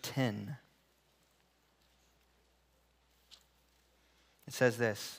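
A young man speaks calmly, pausing between phrases.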